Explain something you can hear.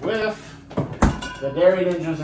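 A refrigerator door thuds shut.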